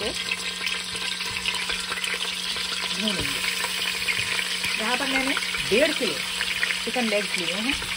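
Raw chicken pieces drop softly into a pot.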